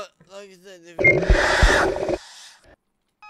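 A ghostly shriek blares loudly and suddenly.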